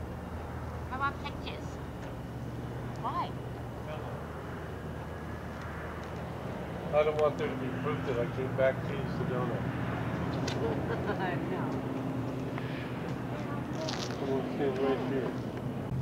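A man talks casually nearby outdoors.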